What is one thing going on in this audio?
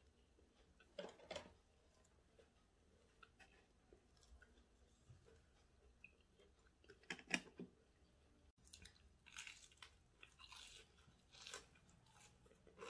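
A woman crunches loudly on fried food close to a microphone.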